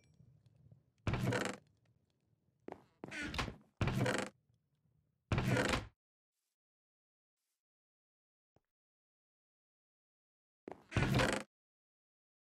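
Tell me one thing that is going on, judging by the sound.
A wooden chest creaks open and bangs shut.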